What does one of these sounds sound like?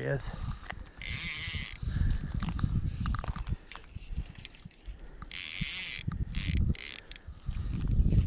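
A fishing line rasps as it is pulled off a reel.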